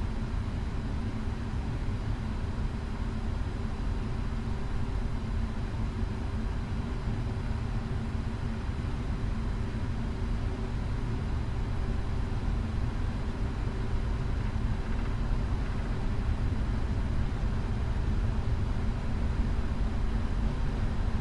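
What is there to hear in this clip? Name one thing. Jet engines hum steadily as an airliner taxis.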